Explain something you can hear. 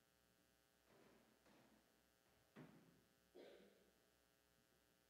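A man speaks briefly in a large echoing hall.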